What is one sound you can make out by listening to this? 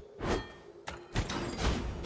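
A magic beam crackles and zaps.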